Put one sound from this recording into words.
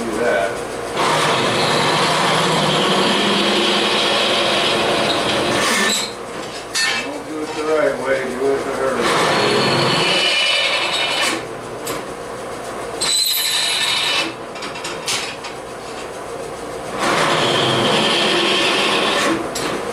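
A welder crackles and buzzes loudly in long bursts.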